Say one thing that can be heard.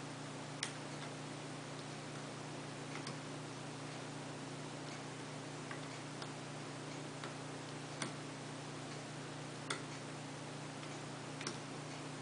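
Small metal picks click faintly against a lock.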